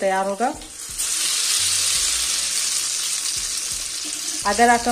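Oil sizzles loudly as food fries in a pan.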